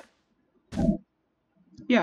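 A block of sand crumbles with a soft crunch.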